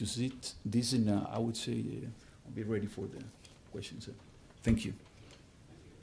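A middle-aged man speaks calmly through a microphone in a large room.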